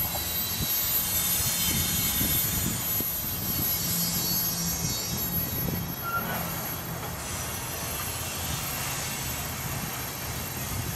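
Freight cars rumble and clatter along the rails.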